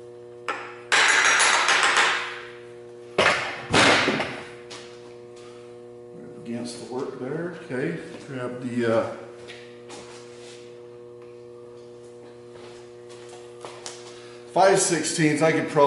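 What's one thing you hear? Metal clanks and rattles as a tool is worked on a machine spindle.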